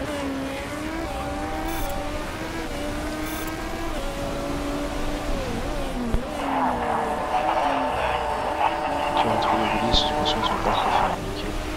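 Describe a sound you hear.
Race car engines whine, rising and falling in pitch as the cars race past.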